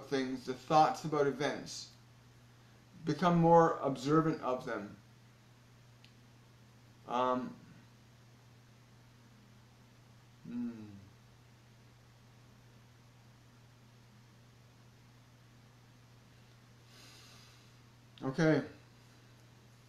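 A middle-aged man speaks calmly and close up, in short bursts with long pauses.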